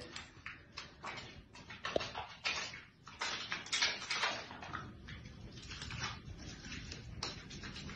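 Wet hands rub together with soapy squelching.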